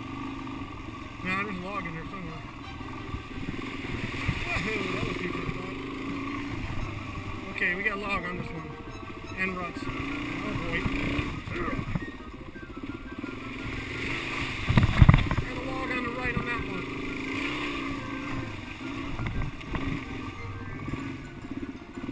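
A motorcycle engine hums and revs steadily up close.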